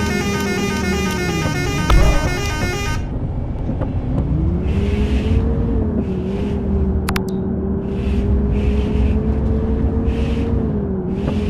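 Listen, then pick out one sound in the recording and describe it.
A bus engine hums steadily, rising and falling with speed.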